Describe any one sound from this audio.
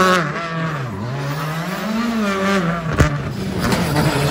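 A rally car's tyres screech as it slides.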